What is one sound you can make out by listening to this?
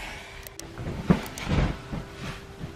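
A pillow thumps softly as it is shifted.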